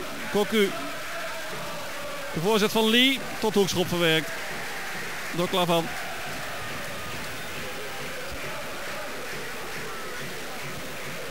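A large stadium crowd murmurs steadily in the open air.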